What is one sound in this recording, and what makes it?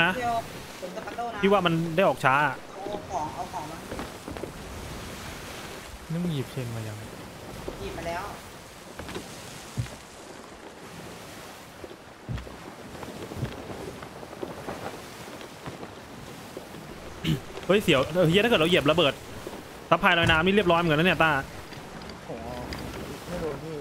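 Wind blows steadily over open water.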